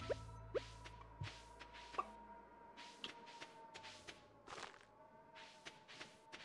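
Short video game sound effects pop and chime.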